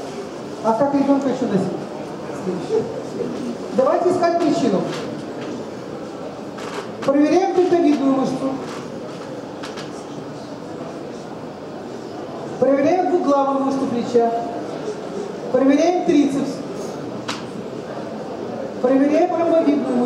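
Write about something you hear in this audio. A man speaks calmly nearby in short bursts.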